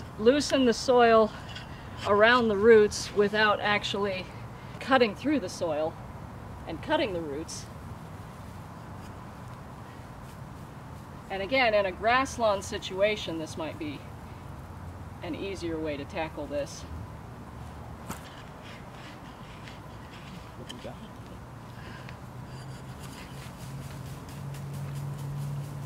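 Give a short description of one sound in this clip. A garden fork scrapes and digs into dry soil.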